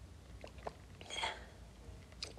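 A young woman sips a drink from a cup.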